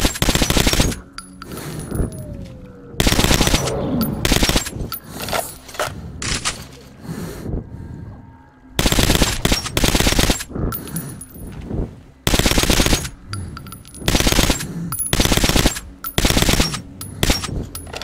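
A rifle fires loud, booming shots one after another.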